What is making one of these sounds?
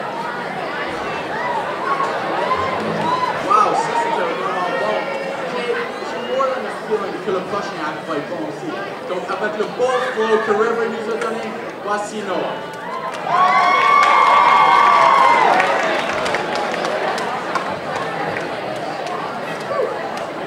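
Young people talk and call out casually in a large echoing hall.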